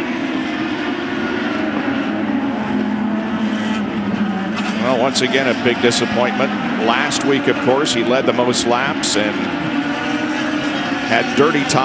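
A racing car engine roars past at high speed.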